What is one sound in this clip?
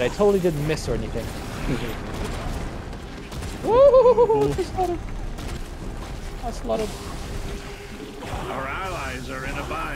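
Explosions rumble and boom in a loud battle.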